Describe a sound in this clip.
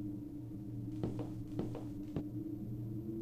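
A girl's footsteps tap lightly on a wooden floor.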